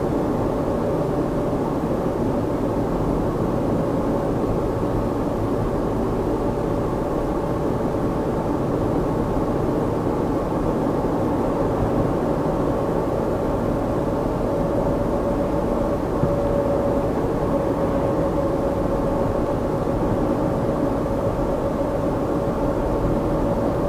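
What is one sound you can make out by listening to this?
Tyres roar steadily on an asphalt road.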